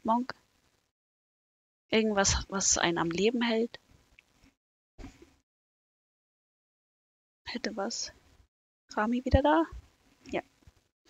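A young woman talks animatedly into a close microphone, in short bursts.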